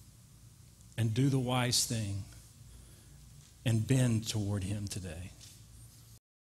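A middle-aged man speaks with animation through a microphone, in a roomy hall.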